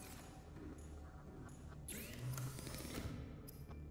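A hatch slides open with a whoosh.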